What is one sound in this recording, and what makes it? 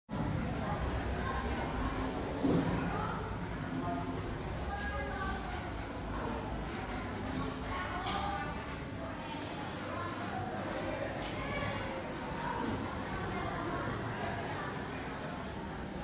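Young people murmur and chat quietly in a room.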